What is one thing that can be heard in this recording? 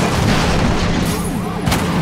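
A car crashes with a loud metallic bang.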